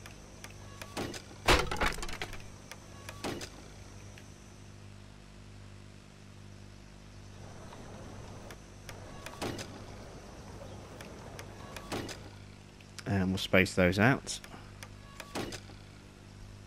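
Short game interface clicks and chimes sound as track signals are placed.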